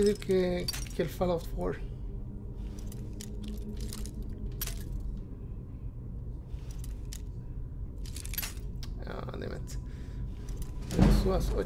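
A metal lock pick clicks and scrapes inside a lock.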